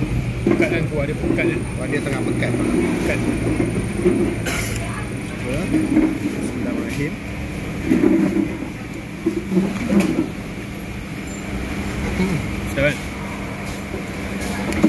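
A metal fork clinks against a bowl.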